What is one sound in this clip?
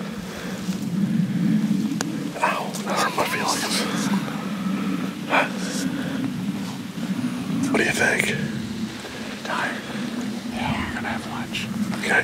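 A middle-aged man talks calmly and cheerfully close by, outdoors.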